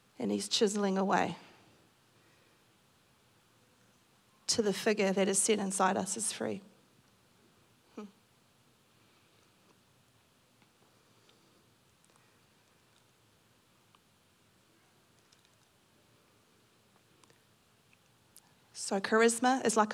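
A middle-aged woman speaks calmly into a microphone over loudspeakers, with long pauses.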